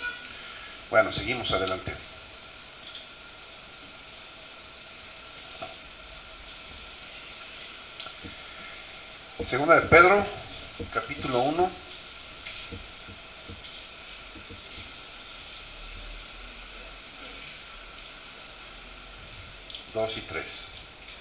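An elderly man speaks slowly and calmly into a microphone, heard through loudspeakers in a large echoing room.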